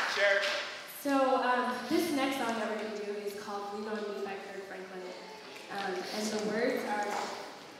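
A young woman sings a melody into a microphone in a large echoing hall.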